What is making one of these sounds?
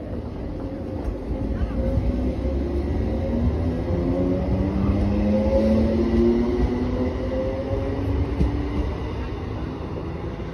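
An electric train pulls away from a platform, its motors whining as they rise in pitch.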